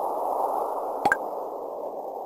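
A short chime rings out.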